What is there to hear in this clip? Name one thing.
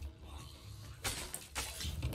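A sword clangs sharply in a fight.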